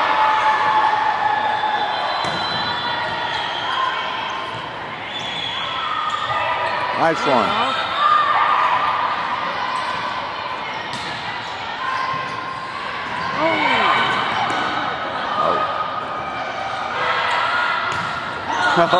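Young women shout and call out to each other in a large echoing gym.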